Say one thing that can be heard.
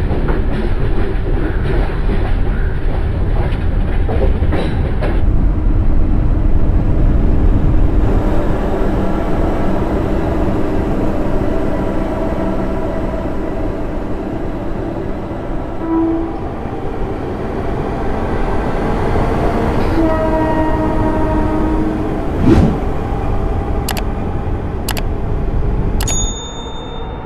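A train rumbles and clatters along the rails.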